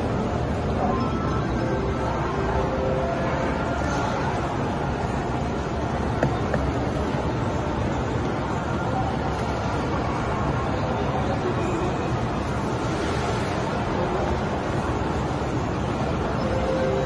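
Skate blades scrape across a plastic rink surface.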